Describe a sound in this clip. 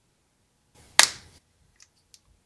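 A cap pops off a marker pen.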